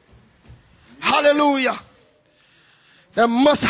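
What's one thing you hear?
A man speaks loudly into a microphone, heard through a loudspeaker.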